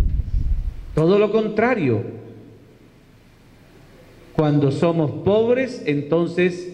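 A middle-aged man speaks calmly into a microphone over a loudspeaker, in an echoing room.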